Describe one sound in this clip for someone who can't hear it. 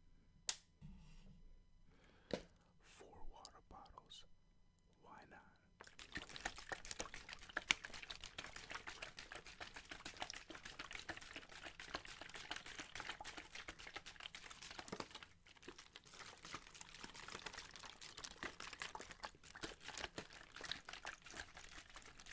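Plastic water bottles crinkle and crackle loudly close to a microphone.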